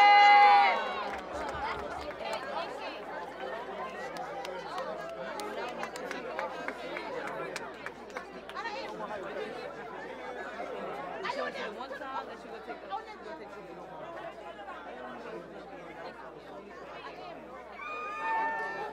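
A crowd of young men and women chatters and calls out loudly outdoors.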